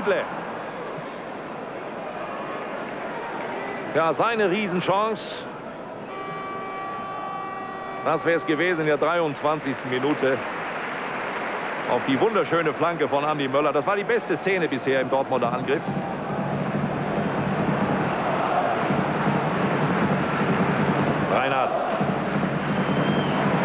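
A large crowd murmurs and roars steadily in a stadium outdoors.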